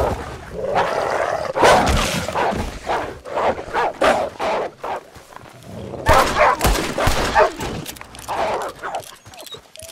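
Wolves snarl and growl.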